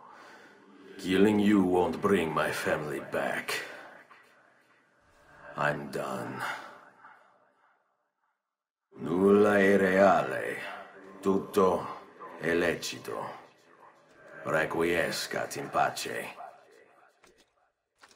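A man speaks in a low, grim voice, close by.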